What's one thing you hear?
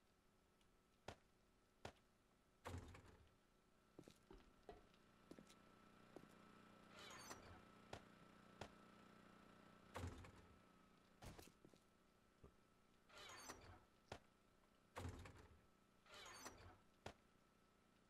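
Wooden crates creak open and shut.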